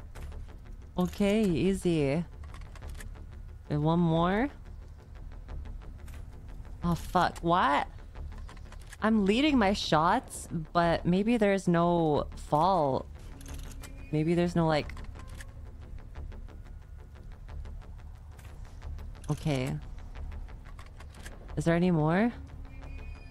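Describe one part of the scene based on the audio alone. A young woman talks with animation into a microphone, in short bursts.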